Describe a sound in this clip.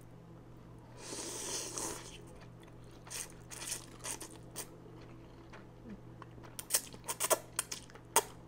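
A woman slurps noodles loudly close to a microphone.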